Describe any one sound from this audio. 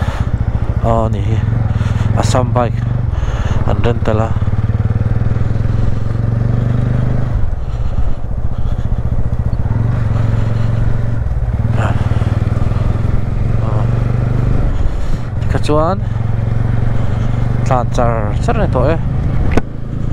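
A motorcycle engine hums steadily and rises and falls as it speeds up and slows down.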